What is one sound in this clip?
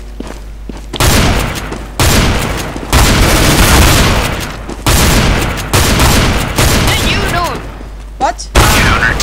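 Shotgun blasts fire in quick, loud bursts close by.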